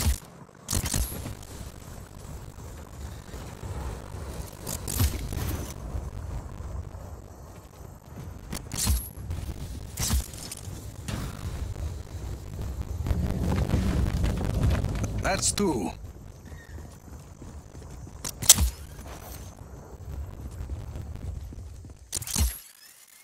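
Footsteps run quickly over grass and stone.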